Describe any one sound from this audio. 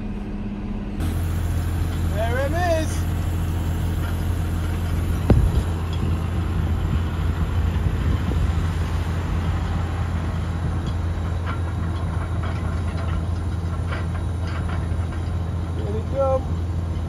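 A tractor engine drones steadily nearby outdoors.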